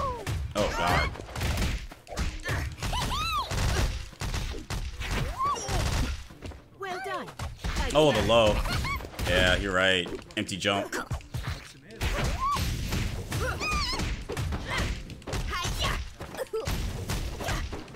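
Rapid punches and kicks land with sharp thuds and smacks.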